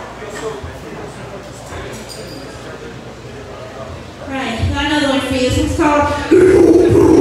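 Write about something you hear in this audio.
A live band plays loud music, growing louder partway through.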